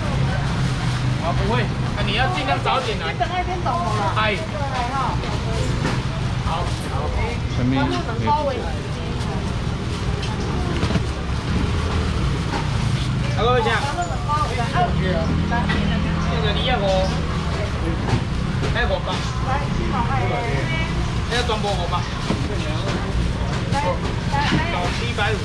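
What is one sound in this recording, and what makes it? Plastic bags rustle as fish are bagged.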